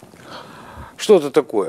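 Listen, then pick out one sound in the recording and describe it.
A middle-aged man speaks loudly, echoing in a large hall.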